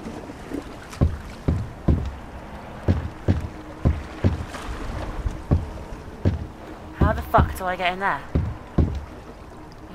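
Footsteps knock on wooden ladder rungs, one after another.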